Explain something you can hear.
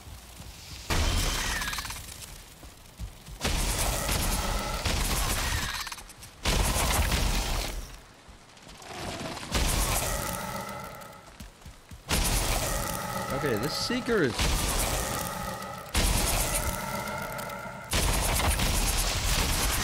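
Heavy thuds of blows strike a creature in quick bursts.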